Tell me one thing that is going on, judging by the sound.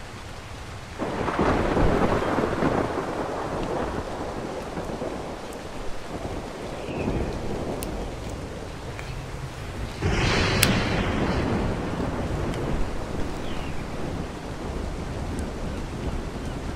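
Ocean waves rush and surge loudly.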